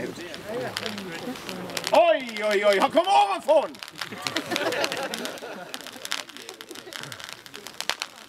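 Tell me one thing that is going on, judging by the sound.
A firework fountain hisses and crackles nearby.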